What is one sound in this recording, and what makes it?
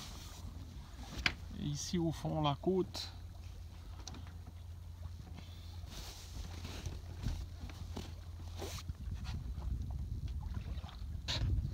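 Water swishes and laps against a moving boat's hull.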